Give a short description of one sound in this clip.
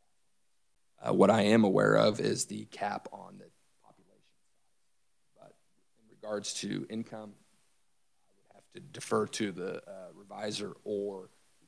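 A man speaks calmly and formally into a microphone.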